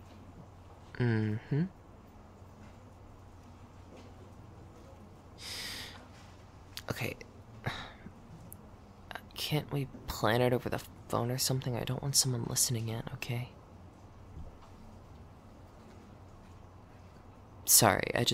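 A young woman speaks softly and closely into a microphone, with pauses.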